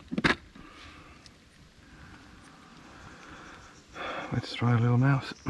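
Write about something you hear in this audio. Small plastic fishing tackle clicks and rustles in someone's hands.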